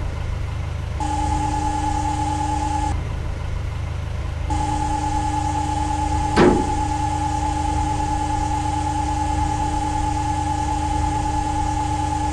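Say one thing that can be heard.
A loader's hydraulics whine as its bucket lifts.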